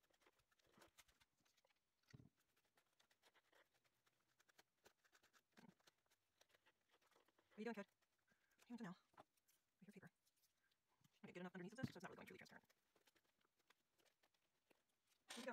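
A brush scrapes lightly over paper.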